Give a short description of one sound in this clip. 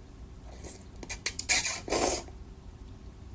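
A young woman slurps noodles loudly and close up.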